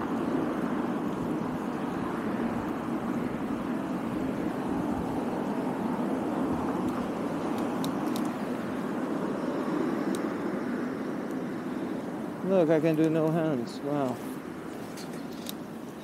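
Wind rushes and buffets loudly while a bicycle rides along outdoors, then eases off.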